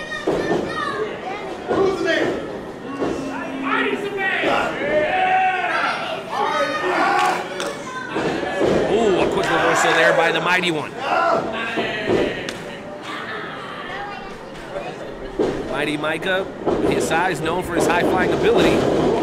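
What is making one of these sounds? A crowd of spectators shouts and chatters in an echoing hall.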